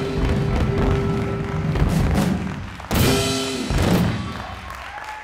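A jazz band with saxophone, piano, guitar and drums plays and ends on a loud final chord in a large hall.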